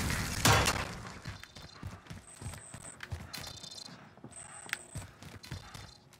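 Footsteps thud on a hard floor indoors.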